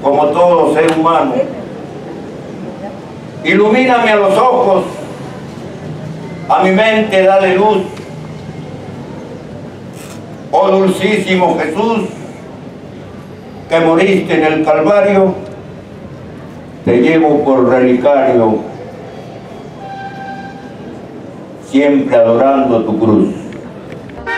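An elderly man calls out loudly in short bursts through a microphone and loudspeakers, with pauses between.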